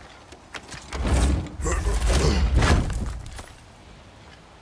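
A heavy chest lid creaks open with a loud clank.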